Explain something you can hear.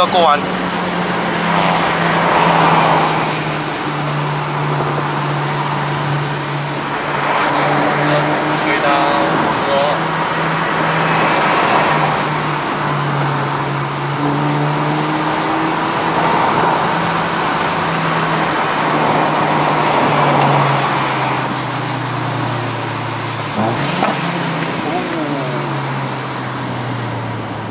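A car engine hums steadily inside the cabin, rising and falling as the car speeds up and slows down.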